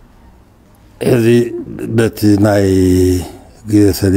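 A man speaks into a microphone in calm, measured phrases.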